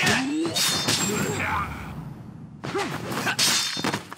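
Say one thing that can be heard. A man grunts and groans as he is hit.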